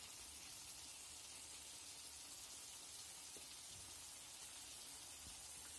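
Thick sauce sizzles and bubbles steadily in a pan.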